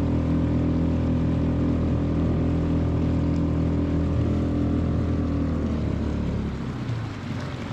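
A boat motor hums steadily close by, then winds down and stops.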